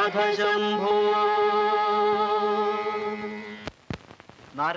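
A man and a woman sing a long held note together.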